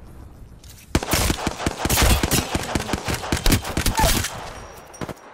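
Gunfire from a rifle rattles in rapid bursts.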